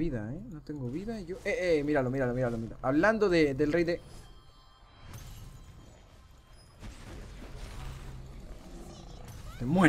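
Weapons clash and magic blasts burst in a fast fight.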